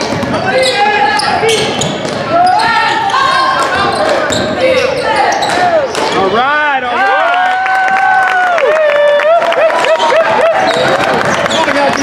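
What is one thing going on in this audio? Spectators shout and cheer from the stands.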